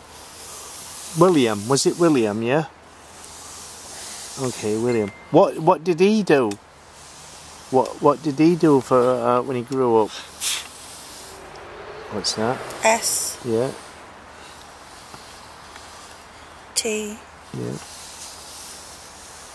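A wooden pointer slides softly across a board.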